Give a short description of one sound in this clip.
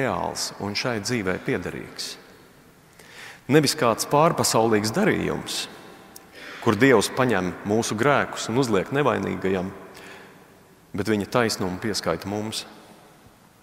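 A middle-aged man speaks calmly into a microphone in a reverberant hall, pausing between phrases.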